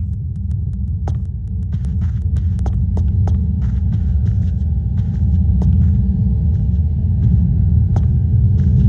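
Footsteps tap lightly on a wooden floor.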